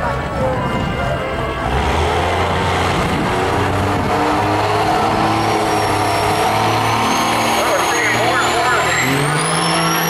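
A diesel truck engine revs loudly in bursts while standing still.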